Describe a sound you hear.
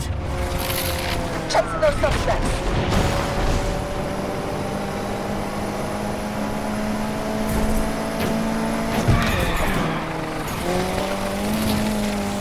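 A racing car engine roars at high revs, rising and falling in pitch as it shifts gears.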